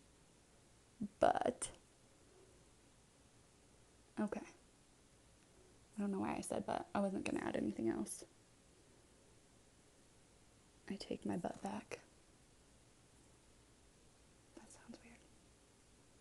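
A woman talks calmly and close by, in short bursts.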